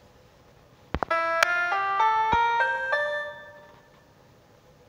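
A rising scale of single electronic piano notes plays quickly.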